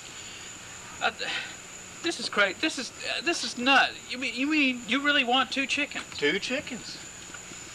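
A second man talks back close by.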